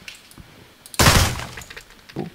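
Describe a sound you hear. A rifle fires a loud shot indoors.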